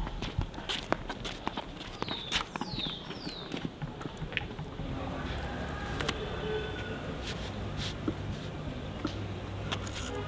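Flip-flops slap on concrete as a child walks.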